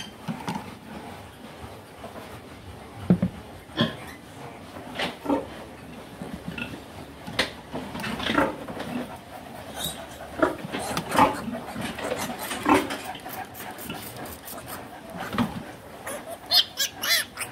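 Piglets grunt.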